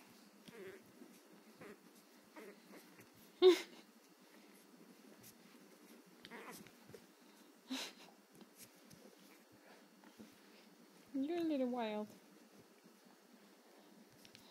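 A puppy scrabbles on a soft bed.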